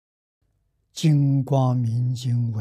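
An elderly man speaks slowly and calmly into a close microphone.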